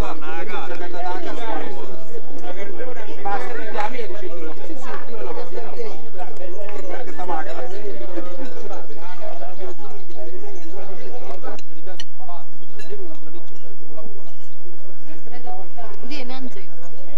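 Several men talk and chatter at once nearby.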